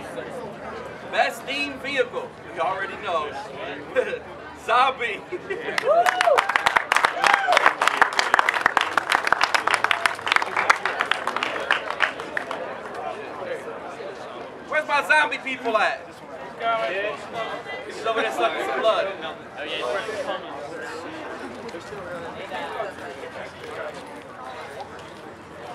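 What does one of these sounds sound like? Men talk and call out loudly outdoors.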